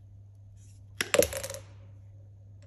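A pipe cutter snaps through a plastic pipe with a sharp crack.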